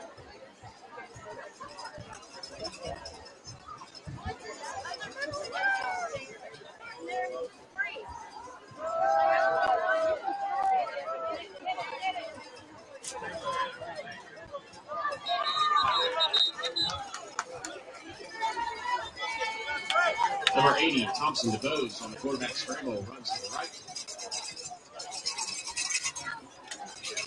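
Young men shout and cheer nearby.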